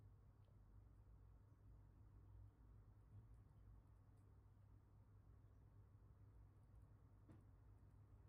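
A spice shaker rattles and taps over a mug.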